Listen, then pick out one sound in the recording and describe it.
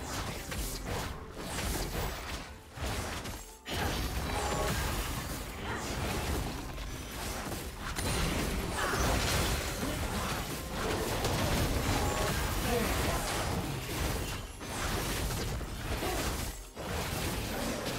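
Magic spells whoosh and crackle.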